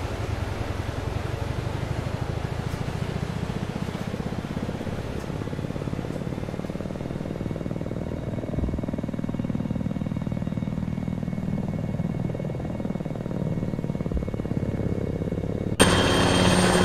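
A helicopter engine whines and its rotor thumps steadily inside the cabin.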